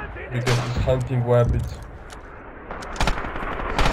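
A rifle magazine clicks into place.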